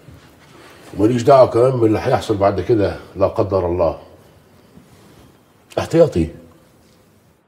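A bearded man speaks with animation.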